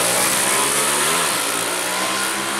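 Motorcycles race away down a track, their engines fading into the distance.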